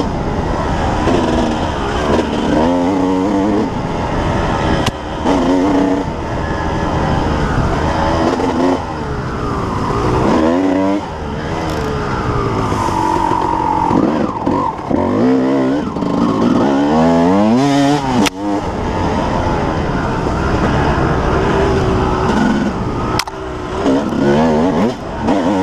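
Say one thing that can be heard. A dirt bike engine revs loudly up and down, close by.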